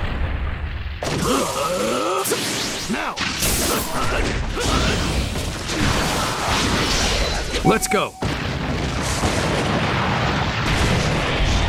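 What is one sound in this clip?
Crackling energy blasts whoosh and zap in a fight.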